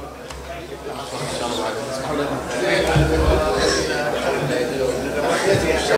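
Several men talk and chatter nearby.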